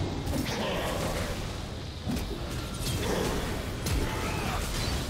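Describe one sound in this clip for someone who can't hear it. Video game spell effects whoosh and crackle in quick bursts.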